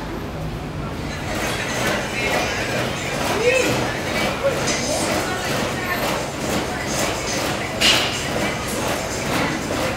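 Treadmills whir and thump steadily under walking feet.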